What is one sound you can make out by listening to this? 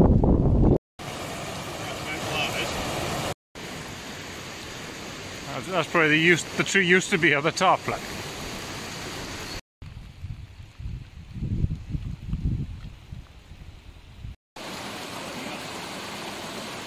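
A stream of water rushes and splashes over rocks.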